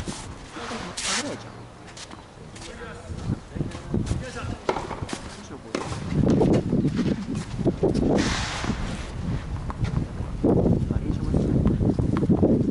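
Footsteps scuff across a hard court outdoors.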